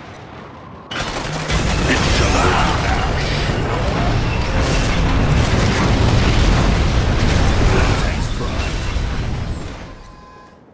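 Laser weapons zap and crackle repeatedly.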